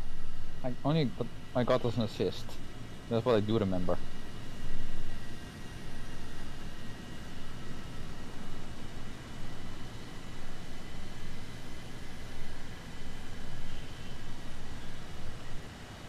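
A jet engine roars steadily.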